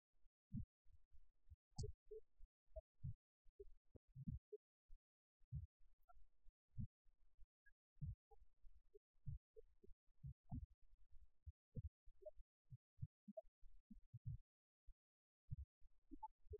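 A young man beatboxes into a microphone with short, punchy low thumps.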